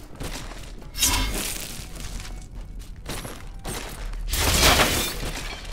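Blades slash and strike in a noisy fight, with bursts of crashing hits.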